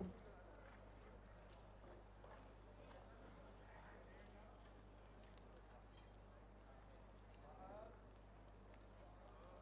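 A crowd of men and women chat quietly at a distance outdoors.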